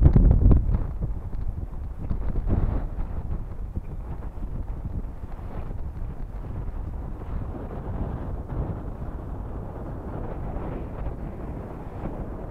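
Water laps against rocks.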